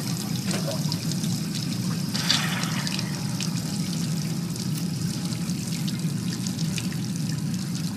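Dishes clink against each other in a sink.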